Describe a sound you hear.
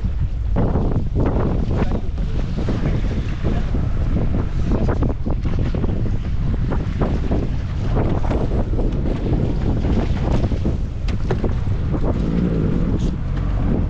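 Waves slap against the side of a boat.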